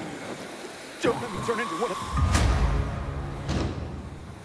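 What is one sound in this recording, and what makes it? A creature thuds onto the ground.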